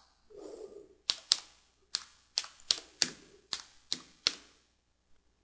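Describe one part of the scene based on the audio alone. Computer keys click in quick taps.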